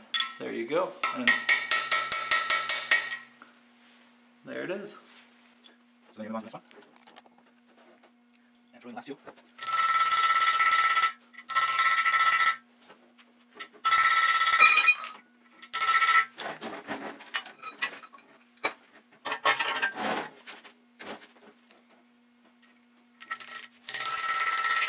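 Metal tools clink and rattle against an engine block in short bursts.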